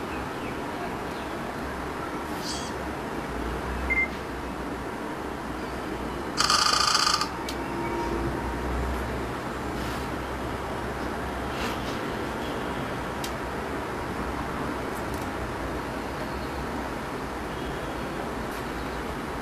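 Fingertips tap lightly on a touchscreen.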